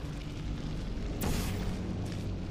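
A futuristic gun fires with a sharp electric whoosh.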